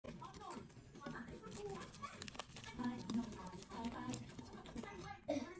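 Fingers press and roll a damp wrapper with soft, sticky squelches.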